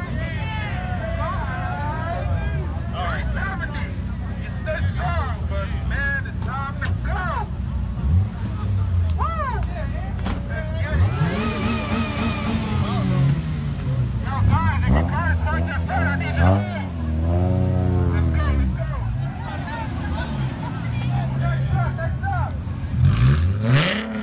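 Car engines idle with a deep, steady rumble.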